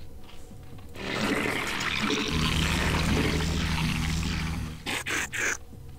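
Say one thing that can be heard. Creatures screech and clash in a noisy battle.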